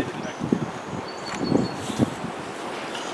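Wooden hive frames knock and scrape as they are lifted.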